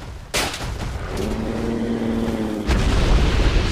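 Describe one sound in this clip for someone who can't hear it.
A large creature roars with a deep growl.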